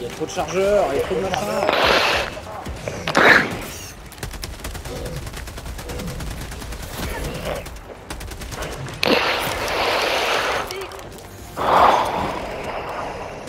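Gunfire and explosions boom loudly.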